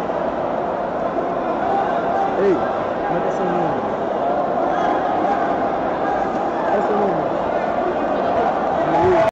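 A large crowd murmurs and chatters in a big echoing arena.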